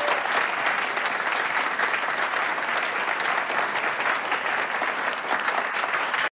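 An audience claps and cheers throughout.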